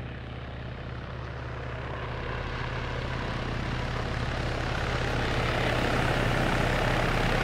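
A helicopter's engine roars, growing louder.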